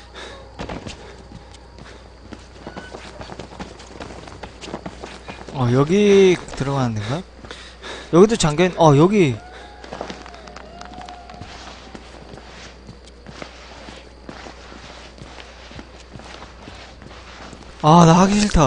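Slow footsteps crunch on gravel.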